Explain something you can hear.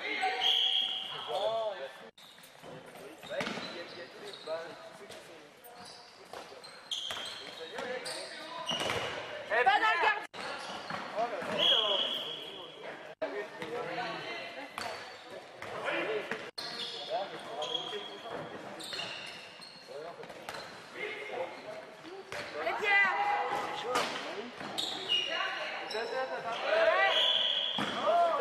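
Sports shoes squeak sharply on a hard floor in a large echoing hall.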